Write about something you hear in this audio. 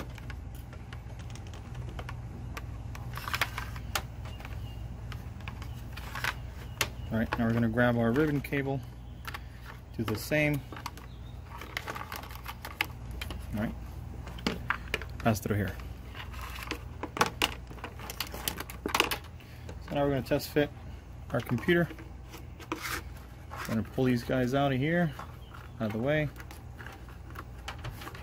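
Plastic parts click and knock as hands handle them.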